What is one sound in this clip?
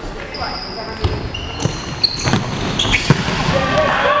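A ball is kicked and thuds, echoing in a large hall.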